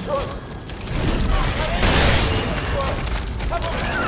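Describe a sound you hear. A loud crash bursts out with debris scattering.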